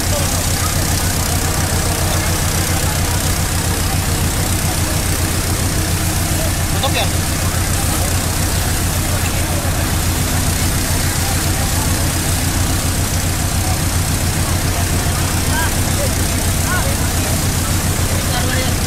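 Water jets hiss and roar steadily from fire hoses.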